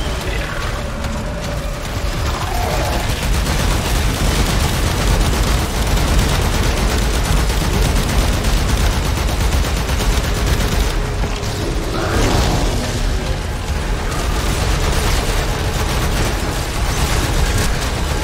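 Electric energy crackles and zaps loudly.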